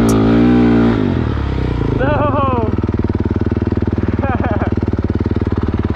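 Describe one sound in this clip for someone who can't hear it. A motorbike engine idles with a rapid putter.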